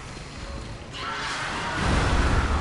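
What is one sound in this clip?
A huge beast stomps heavily close by.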